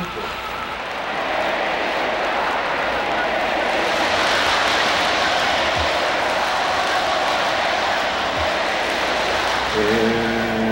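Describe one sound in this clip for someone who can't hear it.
A large crowd cheers and applauds loudly outdoors.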